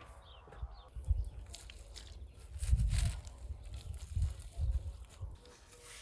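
Shredded cabbage rustles as handfuls drop into a pot.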